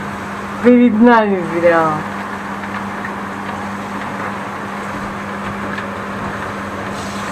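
Raindrops patter on a window pane.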